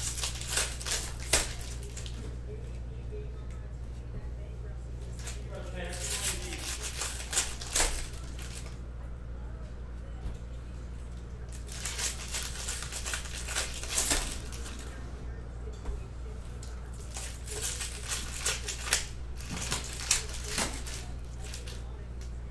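Foil wrappers crinkle and tear up close.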